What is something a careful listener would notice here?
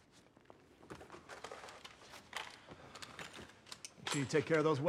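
Metal parts of a rifle click and clack as it is handled.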